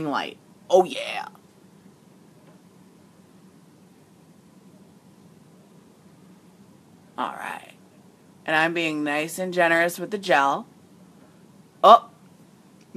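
A woman speaks close to a microphone in short, animated bursts with pauses between them.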